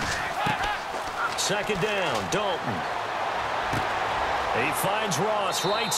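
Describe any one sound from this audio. Football players collide in a tackle with dull thuds.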